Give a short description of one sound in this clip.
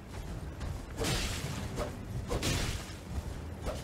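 Sword blows whoosh and thud in a fight.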